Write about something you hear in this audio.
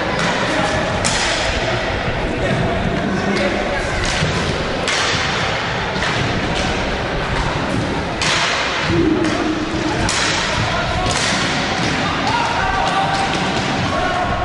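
Hockey sticks clack against a ball.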